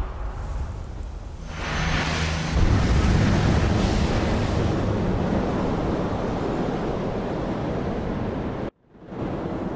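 A deep roaring whoosh swells and rumbles.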